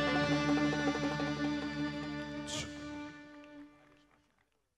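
A band of violins and guitars plays a tune, then fades out.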